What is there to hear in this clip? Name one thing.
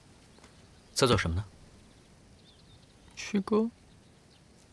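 A young man speaks quietly and briefly, close by.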